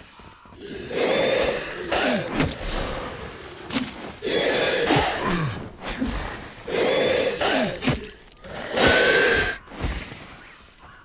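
Heavy weapon blows whoosh and thud into a body again and again.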